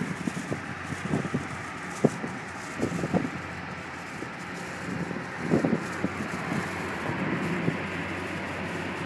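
Road noise and a car engine hum steadily from inside a moving car.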